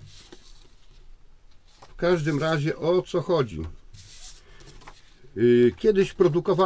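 Paper sheets rustle as they are handled.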